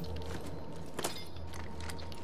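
A pistol is picked up with a short metallic click.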